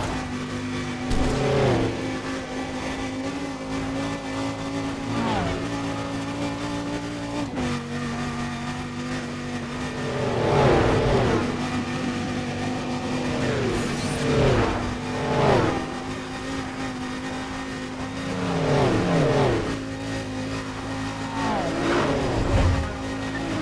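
Other cars whoosh past quickly, again and again.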